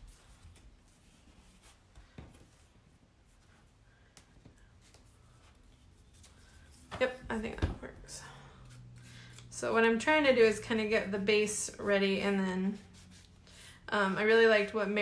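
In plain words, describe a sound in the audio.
Paper rustles and slides softly as it is handled.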